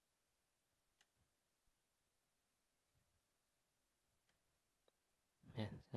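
Hard plastic and metal parts click faintly as hands handle them.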